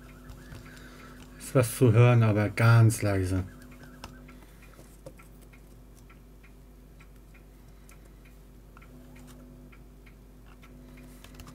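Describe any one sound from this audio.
Small plastic parts click and tap softly under the fingers.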